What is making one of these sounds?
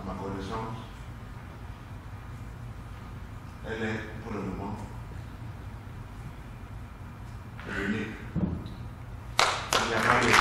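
A man preaches through a microphone in short, emphatic bursts with pauses.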